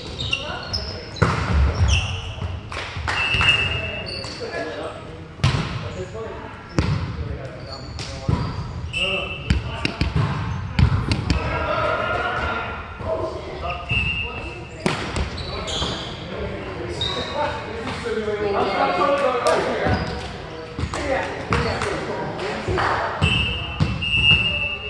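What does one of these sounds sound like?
A volleyball thumps off hands and arms in a large echoing gym.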